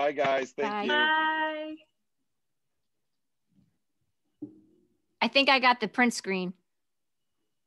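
A woman speaks cheerfully over an online call.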